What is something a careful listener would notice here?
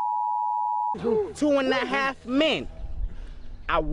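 A young man beatboxes close by.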